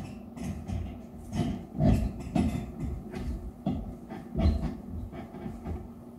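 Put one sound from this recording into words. Footsteps shuffle across a hard floor.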